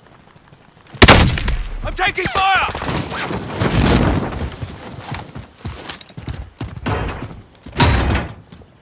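Gunfire bursts loudly in a video game.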